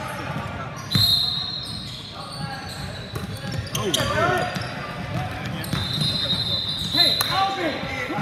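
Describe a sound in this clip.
A referee blows a shrill whistle.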